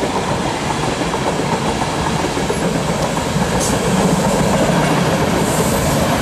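A passenger train rumbles past, its wheels clattering over the rail joints.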